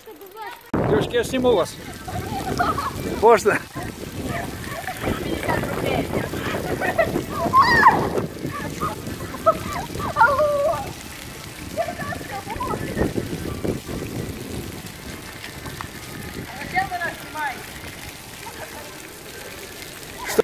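Fountain jets splash and spatter on wet paving.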